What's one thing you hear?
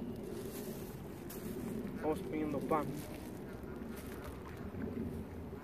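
A plastic bag rustles close by.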